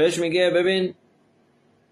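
A middle-aged man speaks calmly and close to the microphone, then falls silent.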